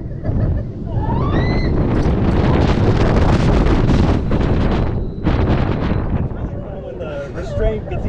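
Young women scream on a roller coaster.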